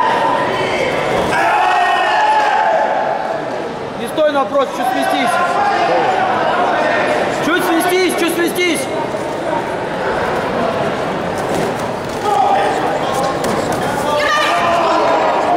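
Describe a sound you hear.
Fighters shout sharply as they strike.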